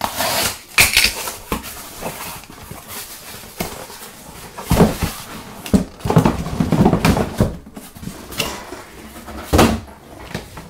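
Cardboard rustles and scrapes as a box is opened and handled.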